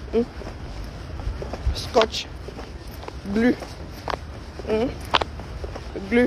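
A middle-aged woman speaks in short phrases close to the microphone.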